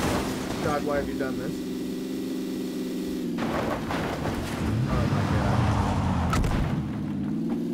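A car scrapes along a metal fence.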